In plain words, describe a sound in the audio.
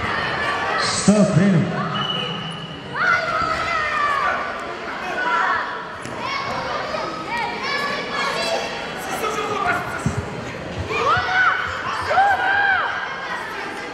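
Spectators cheer and shout.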